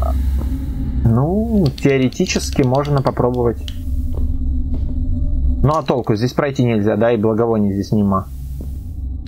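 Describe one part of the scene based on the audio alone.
A young man talks close to a microphone, with animation.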